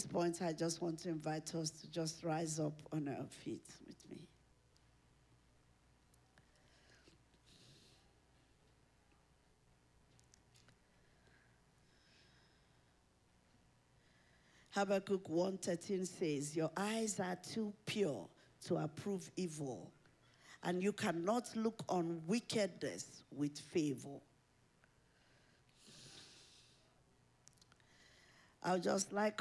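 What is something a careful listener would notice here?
A woman speaks with feeling into a microphone, heard through loudspeakers in a large room.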